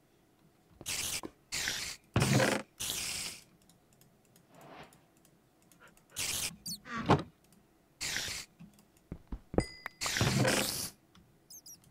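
A game chest creaks open.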